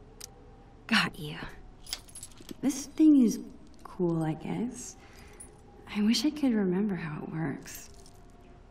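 A young woman speaks quietly and thoughtfully, close by.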